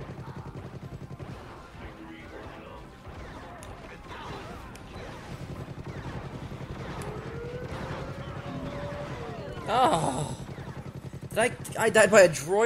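Game guns fire in rapid bursts with zapping blasts.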